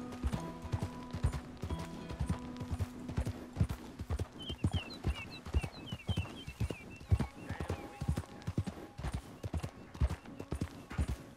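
A horse's hooves clop steadily on a dirt trail.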